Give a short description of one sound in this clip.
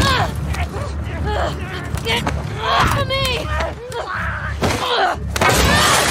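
A young woman grunts and struggles in a fight.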